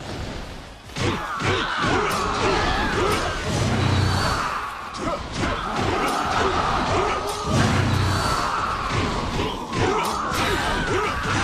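Armoured bodies thud to the ground in quick succession.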